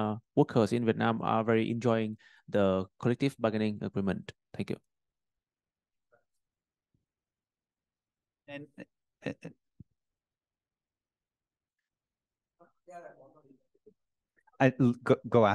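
A man speaks through a microphone in a large room, with pauses.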